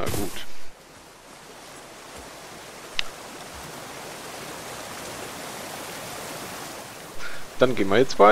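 A waterfall roars and rushes nearby.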